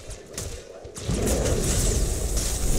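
A loud blast roars.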